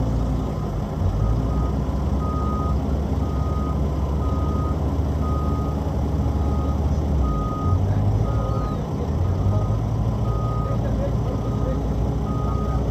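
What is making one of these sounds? A loader's engine revs as it drives forward.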